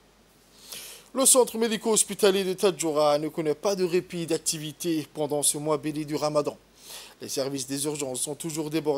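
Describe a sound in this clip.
A young man speaks calmly and clearly into a microphone, reading out.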